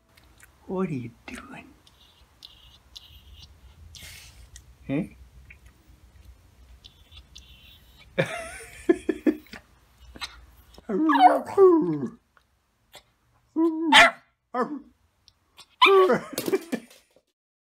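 A small dog howls and yips close by.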